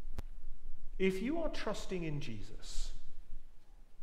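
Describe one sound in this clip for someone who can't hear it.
A middle-aged man speaks calmly into a microphone in a large echoing room.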